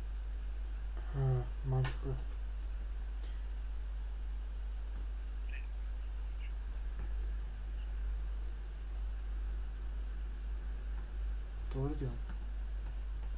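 A young man speaks briefly and calmly into a nearby microphone.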